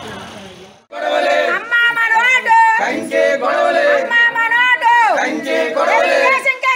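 A group of women and men chant slogans loudly.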